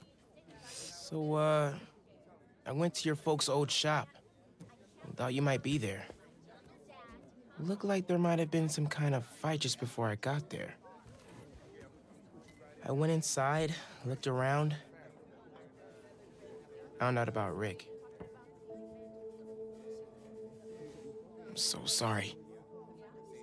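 A young man speaks softly and sadly, close by.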